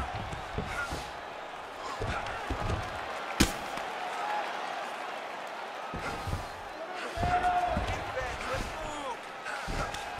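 Heavy punches thud repeatedly against a body.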